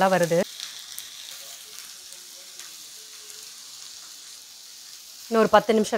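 Food sizzles softly on a hot pan.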